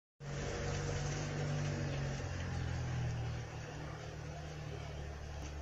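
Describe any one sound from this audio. Water trickles and splashes close by.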